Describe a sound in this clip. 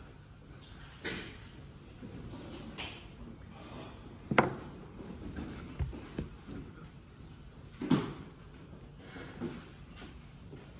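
Small objects knock and bump on a table close by.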